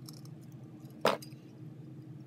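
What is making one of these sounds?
Pliers snip a small piece of metal with a sharp click.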